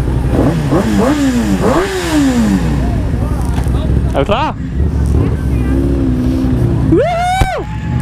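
A motorcycle engine revs hard in quick rising and falling bursts.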